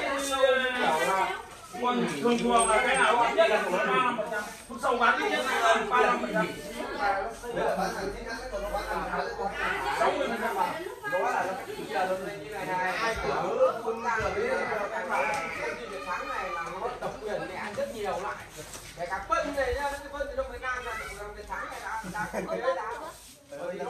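Several men talk with animation close by.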